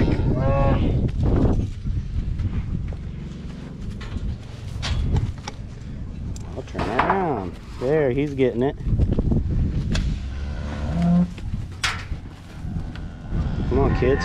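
Cattle moo loudly nearby.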